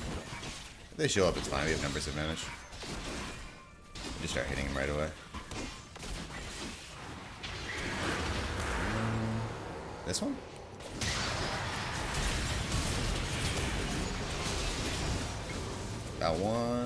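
A man talks with animation, close to a headset microphone.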